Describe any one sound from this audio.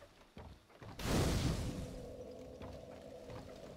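A fire bursts alight with a whoosh.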